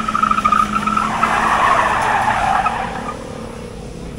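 Tyres squeal on pavement as a car drifts.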